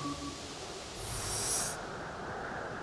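A bright, shimmering chime rings out.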